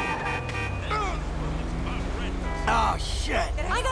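A car hits a person with a sudden thud.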